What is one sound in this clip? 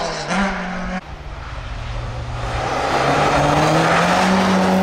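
A third rally car engine growls as it approaches.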